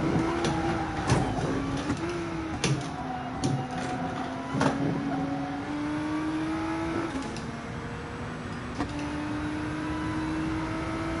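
A racing car engine roars steadily, its pitch climbing and dropping sharply as it shifts gears.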